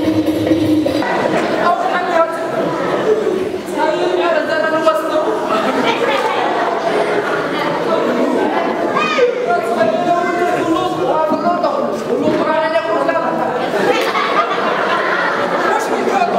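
A man speaks with animation through a loudspeaker in a large echoing hall.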